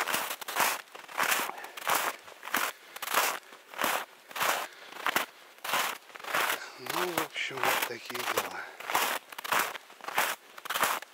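Footsteps crunch steadily through snow, close by.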